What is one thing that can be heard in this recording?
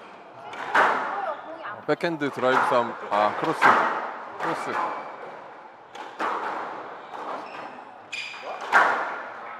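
A squash ball smacks sharply off racquets and walls in an echoing court.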